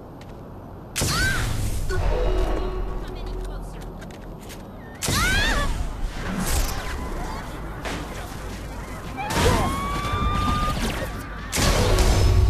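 Electronic zaps and whooshes burst out in loud bursts.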